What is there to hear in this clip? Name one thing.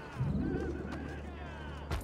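Footsteps patter across roof tiles.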